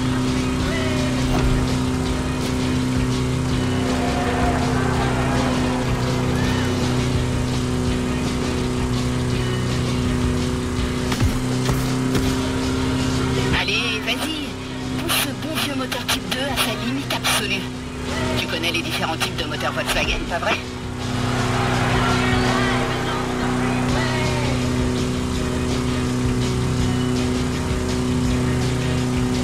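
A van's engine hums steadily at speed.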